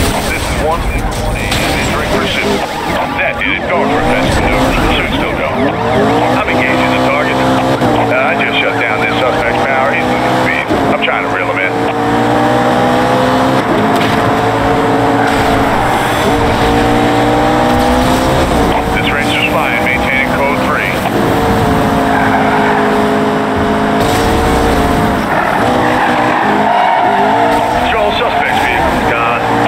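A car engine roars and revs up through gear changes.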